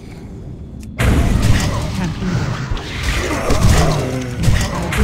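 A sword slashes and strikes in a fight.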